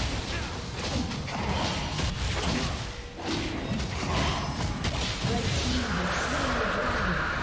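Spell blasts and weapon hits crackle and thump in a fast fight.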